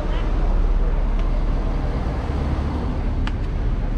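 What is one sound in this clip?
A bus drives past with a low rumble.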